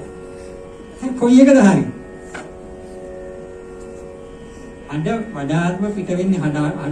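A middle-aged man speaks into a microphone through a loudspeaker in a room, pausing between phrases.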